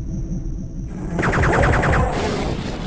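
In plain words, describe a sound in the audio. A heavy gun fires rapid shots.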